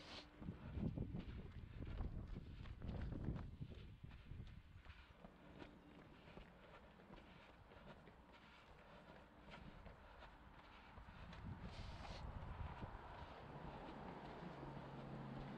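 Running footsteps patter on pavement close by.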